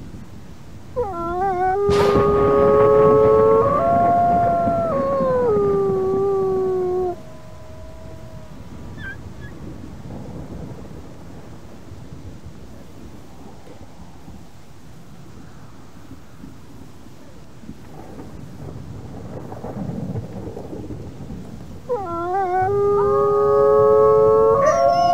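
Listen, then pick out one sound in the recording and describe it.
A wolf howls loudly, with long wavering notes.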